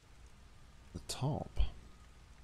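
A man speaks a few words briefly into a close microphone.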